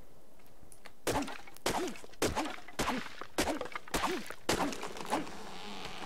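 A hatchet chops into a tree trunk with repeated knocks.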